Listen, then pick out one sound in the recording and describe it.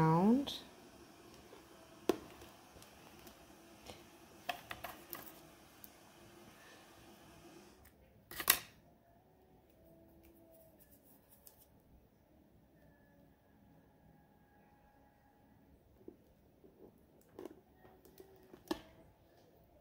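Rhinestones click softly as fingers press them onto a hard surface.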